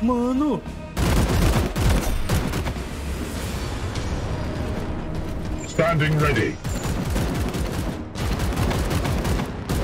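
Rapid gunfire and blasts rattle in a battle.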